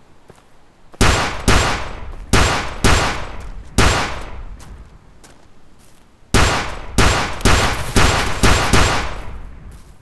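A pistol fires shots in quick bursts.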